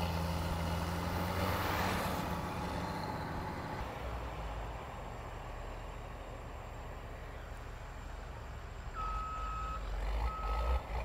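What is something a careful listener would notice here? Heavy diesel engines rumble steadily nearby.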